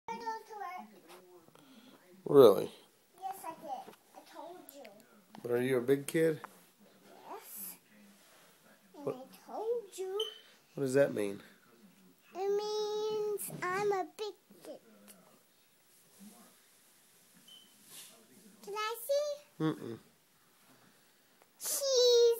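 A little girl talks and squeals close by in a high voice.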